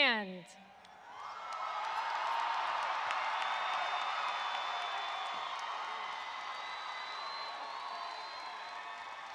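A large crowd cheers and applauds loudly in a large hall.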